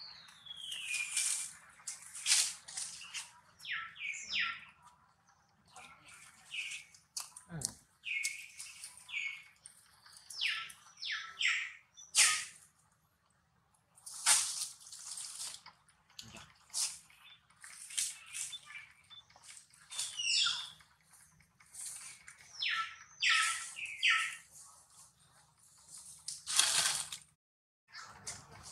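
A baby monkey squeaks and chirps in short, high bursts.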